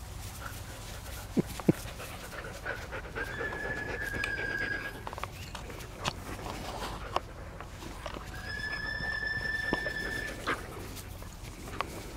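Dogs scuffle and pant close by on grass.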